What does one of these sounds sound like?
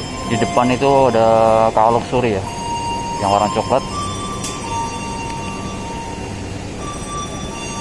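A parked train's engine hums steadily.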